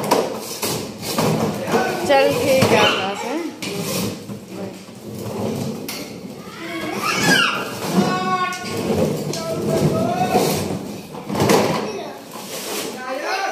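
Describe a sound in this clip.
Plastic toy wheels rumble and rattle across a hard floor.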